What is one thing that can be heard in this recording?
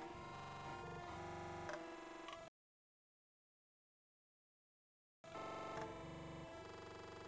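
Upbeat game music plays with drums.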